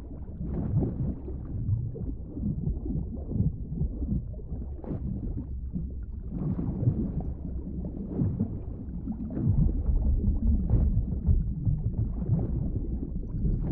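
Deep water rumbles and churns in a low, muffled drone.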